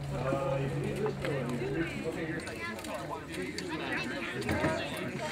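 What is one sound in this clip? Several men talk and chatter nearby outdoors.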